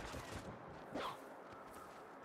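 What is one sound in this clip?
A heavy hammer swings through the air with a whoosh.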